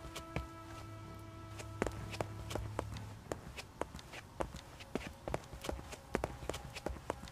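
Footsteps echo on stone in a large, hollow space.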